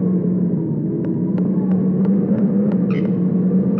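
Footsteps tap on a hard stone floor.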